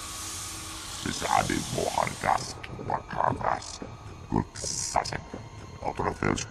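A man speaks in a gruff, growling voice, close by.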